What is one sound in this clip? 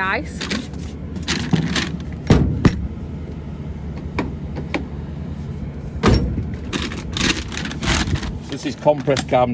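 Plastic rustles and knocks as a man rummages in a cooler.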